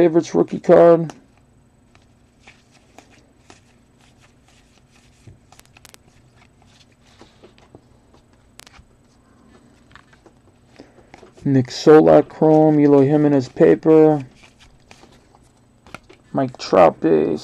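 Stiff cards shuffle and rustle softly between hands, close by.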